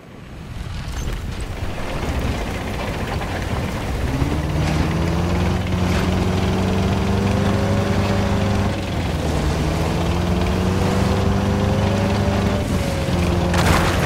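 An armoured vehicle's engine roars and rises in pitch as the vehicle drives.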